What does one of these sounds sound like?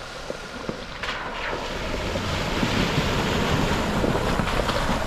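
Water splashes as a vehicle drives through a shallow creek.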